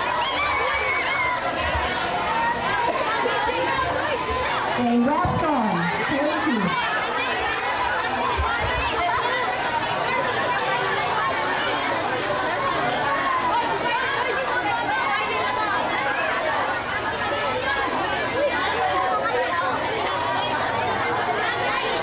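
A crowd of children and adults chatters loudly all around, close by.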